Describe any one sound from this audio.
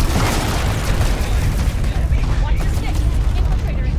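Rapid gunfire crackles.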